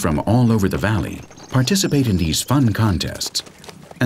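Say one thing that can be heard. Horses gallop across grass with thudding hooves.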